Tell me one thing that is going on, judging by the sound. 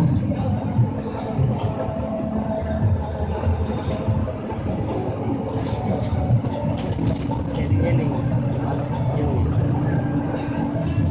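A bus cabin rattles and shakes over the road.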